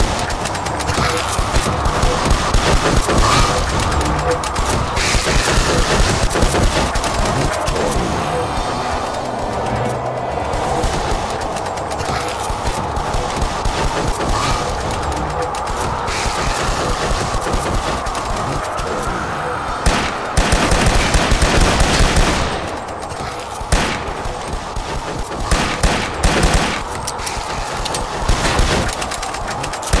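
Shotgun blasts boom again and again.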